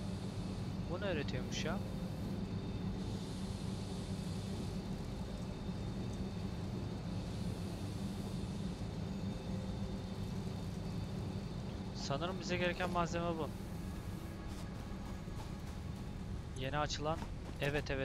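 A man talks briefly and casually into a close microphone.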